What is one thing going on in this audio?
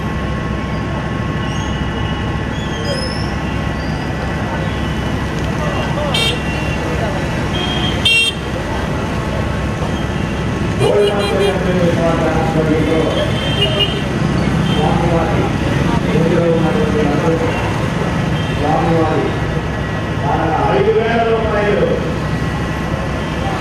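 A crowd of people murmurs and calls out outdoors.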